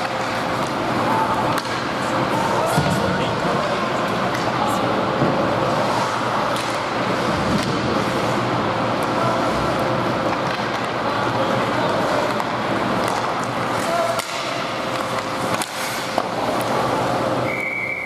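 Hockey sticks clack against the puck.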